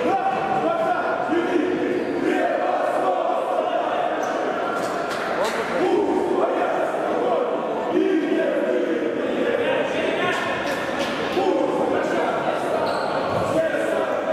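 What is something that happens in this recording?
Men shout and call out in a large echoing sports hall.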